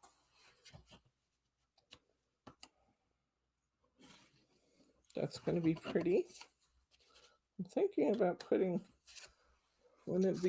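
Paper slides and rustles on a table.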